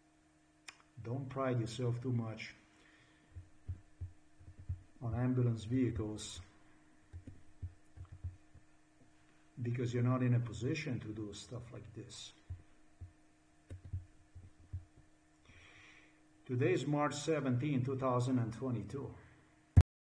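A man talks calmly and close to a microphone, in short bursts with pauses.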